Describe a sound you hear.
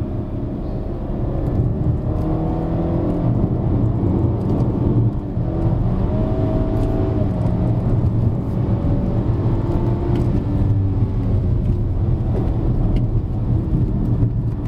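A car engine hums and revs steadily from inside the cabin.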